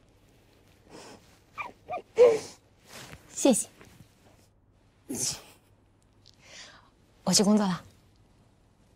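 A woman speaks softly and warmly, close by.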